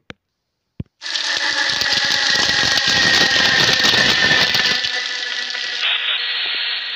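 A fire roars loudly.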